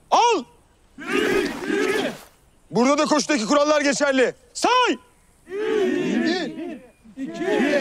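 A group of young men shout in unison.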